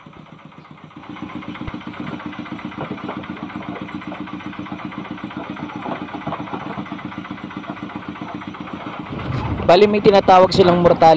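A small engine runs with a steady, rapid chug.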